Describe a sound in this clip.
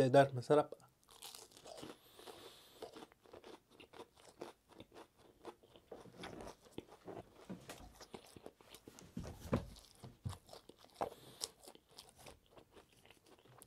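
Chewing sounds come wet and close to a microphone.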